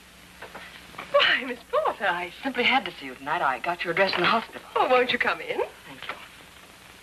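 A woman greets someone warmly and excitedly nearby.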